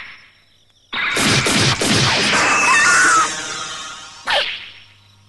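A loud energy blast roars and whooshes.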